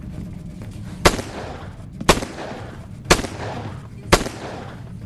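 Gunshots fire in a steady series.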